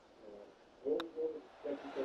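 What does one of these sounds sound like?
A golf putter taps a ball with a sharp click.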